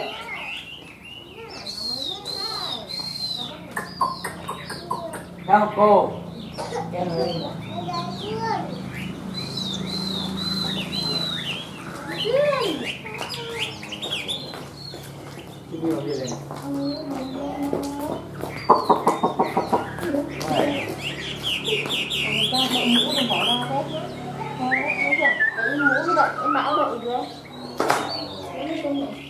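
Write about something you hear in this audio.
A songbird sings loud, varied, whistling phrases close by.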